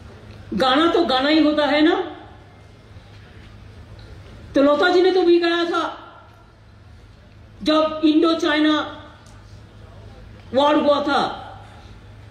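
An older woman speaks forcefully into a microphone through loudspeakers, in short bursts with pauses.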